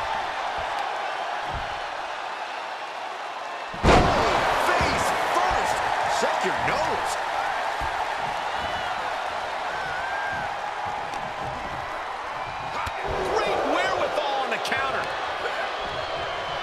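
A large crowd cheers and roars throughout in a big arena.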